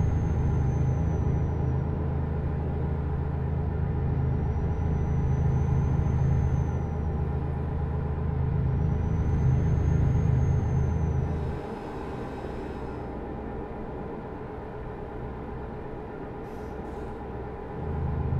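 A truck engine rumbles steadily, dropping quieter briefly before picking up again.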